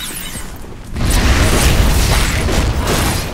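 Weapons clash in a loud fight.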